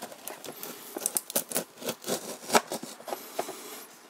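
A utility knife slices through plastic with short scratching sounds.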